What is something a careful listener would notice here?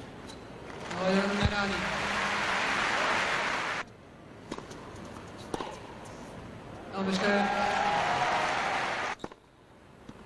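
A crowd applauds loudly in a large hall.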